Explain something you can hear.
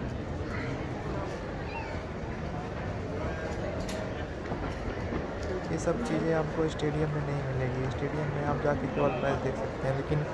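A crowd chatters in a busy indoor space.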